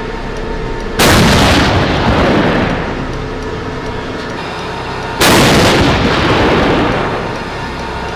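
A tank cannon fires with loud booming blasts that roll away.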